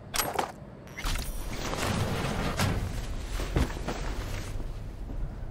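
Cloth rustles as a limp body is lifted and carried.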